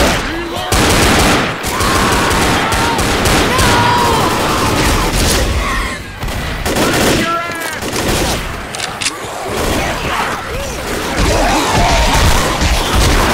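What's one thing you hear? A pistol fires repeatedly.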